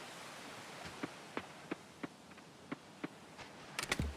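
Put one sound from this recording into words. Footsteps patter steadily on a dirt path.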